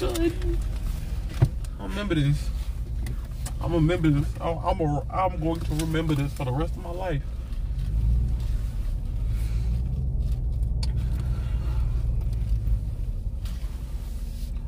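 A car engine hums low and steady as the car drives.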